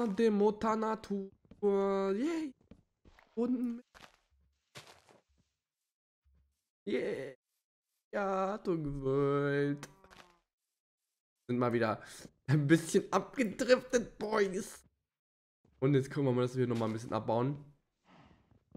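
A young man talks with animation through a close microphone.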